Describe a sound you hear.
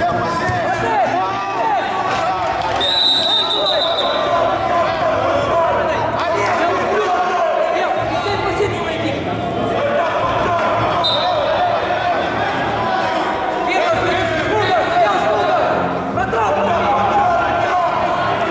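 Men shout and call out from the sides in a large echoing hall.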